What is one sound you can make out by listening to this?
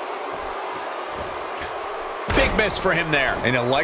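A body slams onto a wrestling mat with a thud.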